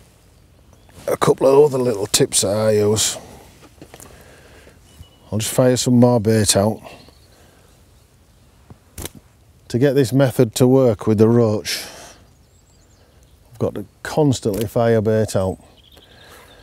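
A middle-aged man talks calmly and close up through a clip-on microphone, in short bursts with pauses.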